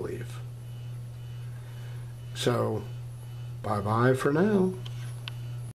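A computer monitor hums steadily.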